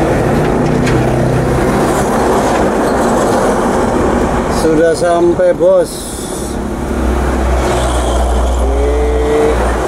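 Large trucks roar past close by.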